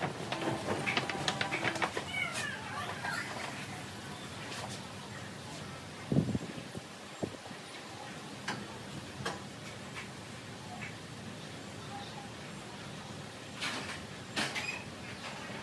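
A man rattles and knocks on a metal rack close by.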